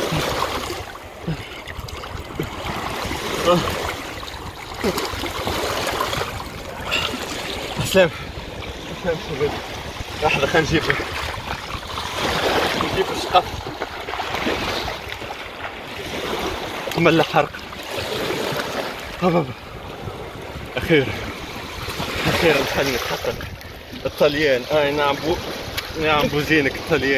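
Small waves lap on the shore.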